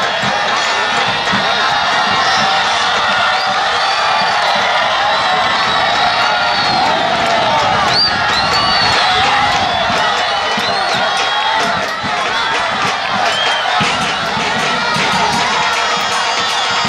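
A large crowd cheers and chants loudly in an open stadium.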